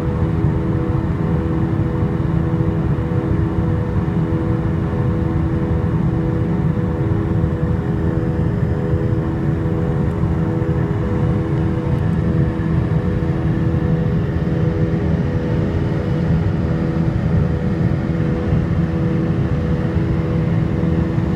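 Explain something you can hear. A jet engine roars with a steady drone, heard from inside a cabin.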